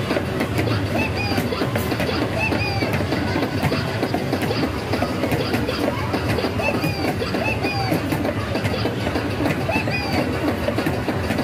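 A rubber mallet thumps on the pads of an arcade game.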